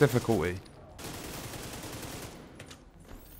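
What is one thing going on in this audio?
A rifle fires a burst of gunshots.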